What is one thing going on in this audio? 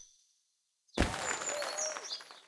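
A short, cheerful jingle plays.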